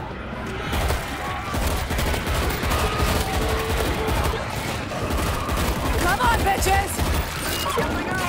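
A horde of zombies snarls and shrieks.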